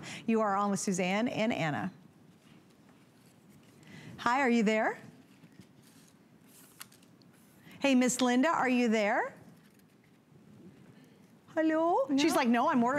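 A woman talks with animation through a microphone, in short bursts.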